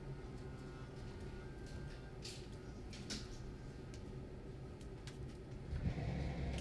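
Bare footsteps pad softly across a floor.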